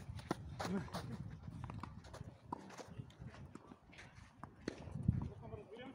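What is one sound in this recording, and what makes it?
Footsteps shuffle on a clay court.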